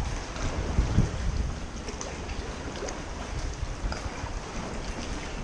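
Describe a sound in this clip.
A kayak paddle dips and splashes in water.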